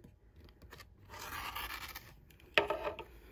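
A rotary cutter slices through fabric.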